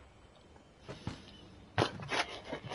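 Knuckles knock on a door.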